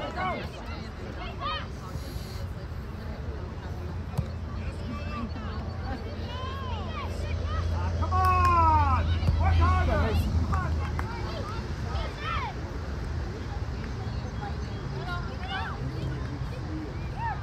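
Children shout and call out across an open field, some way off.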